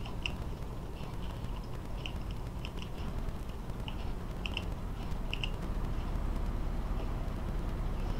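Tracks clank and rattle over the ground.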